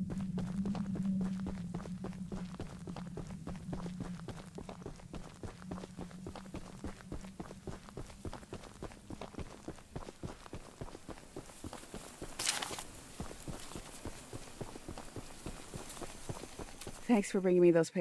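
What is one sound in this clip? Footsteps crunch steadily over dry ground and grass.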